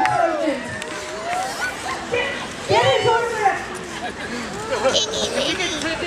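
Men and women chatter and call out in a lively crowd outdoors.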